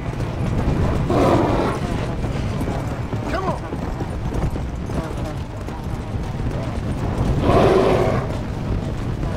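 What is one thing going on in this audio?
A bear roars loudly.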